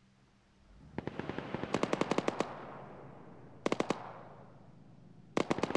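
Rapid bursts of gunfire rattle and echo away.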